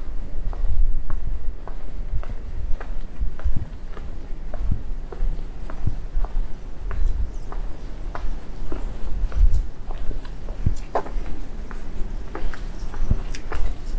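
Footsteps tap steadily on pavement close by.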